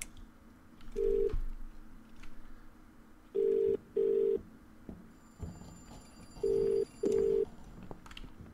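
A phone rings in short bursts.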